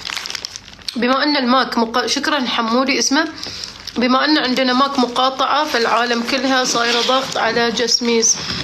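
A young woman talks calmly close to a microphone.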